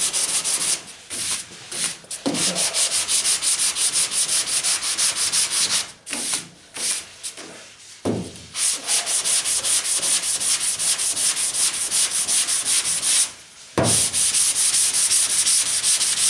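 Sandpaper rasps by hand in quick back-and-forth strokes over a primed car hood.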